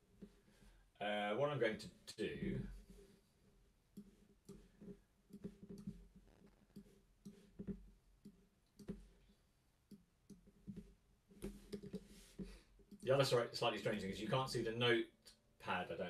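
A guitar plays a few notes.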